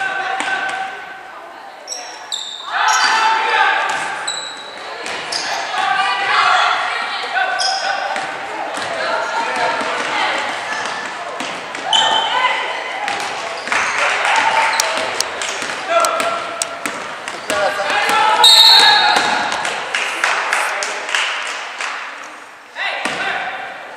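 A crowd in a large echoing gym shouts and cheers.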